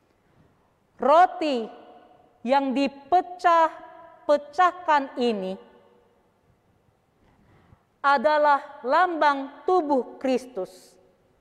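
A woman speaks slowly and clearly through a microphone.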